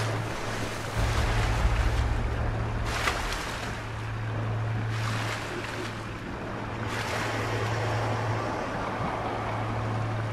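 Muffled water gurgles and rumbles underwater.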